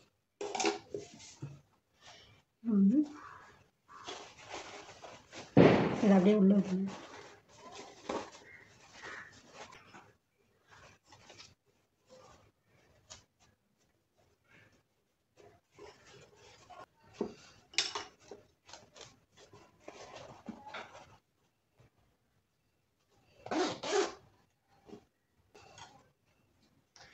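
Stiff fabric rustles and crinkles as hands handle it.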